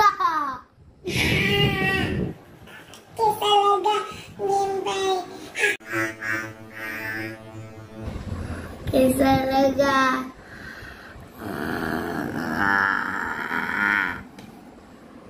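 A young boy shouts and roars playfully, close by.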